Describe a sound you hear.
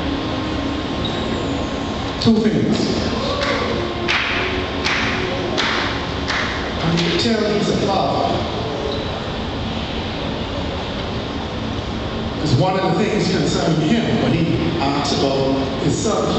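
A man speaks with animation through loudspeakers in a large echoing hall.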